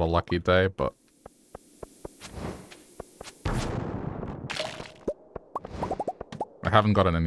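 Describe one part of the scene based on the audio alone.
Footsteps tap quickly on a stone floor.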